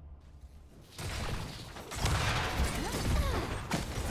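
Sci-fi energy weapons blast and zap in a noisy fight.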